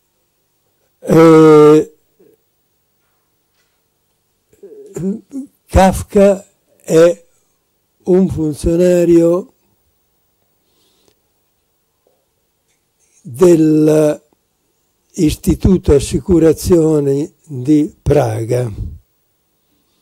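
An elderly man speaks calmly into a microphone, lecturing with pauses.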